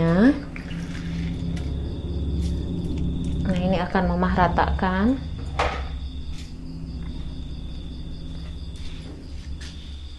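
Liquid bubbles and simmers in a pan.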